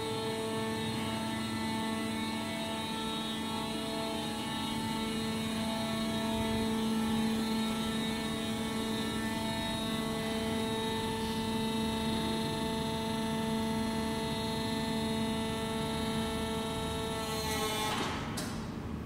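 A hydraulic car lift motor whines steadily, then stops abruptly.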